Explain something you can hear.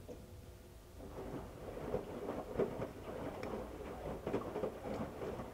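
Water sloshes and splashes inside a washing machine.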